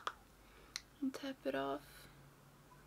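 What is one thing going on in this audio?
A young woman speaks briefly and calmly, close to a microphone.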